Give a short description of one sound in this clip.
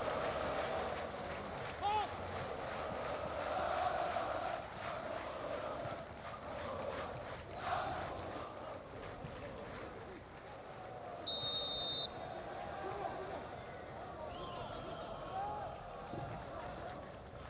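A large crowd chants and cheers in a stadium.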